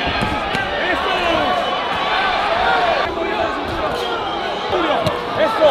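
Boxing gloves thud against a body in quick punches.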